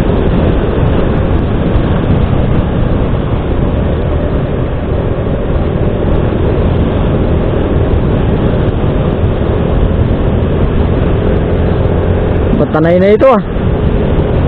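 A motorcycle engine hums steadily while riding along.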